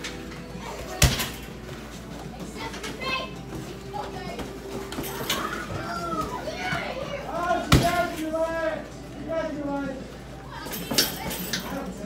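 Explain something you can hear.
Kicks thud hard against a heavy punching bag.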